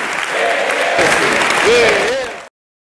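A crowd cheers and whistles loudly.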